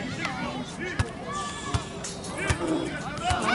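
A football thumps as it is kicked.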